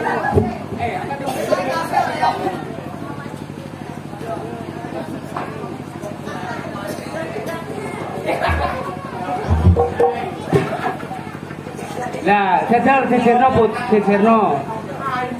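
Young men talk and laugh loudly.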